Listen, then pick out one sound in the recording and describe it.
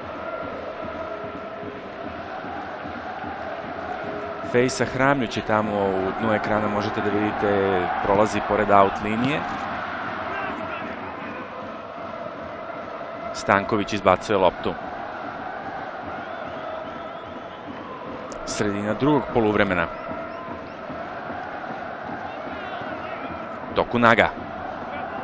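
A large stadium crowd murmurs and chants steadily in the distance.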